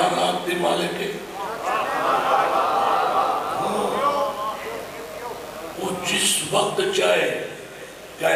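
A man sings out a lament loudly through a microphone, with echo.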